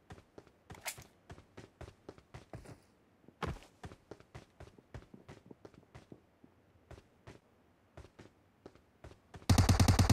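Footsteps tap on a hard roof.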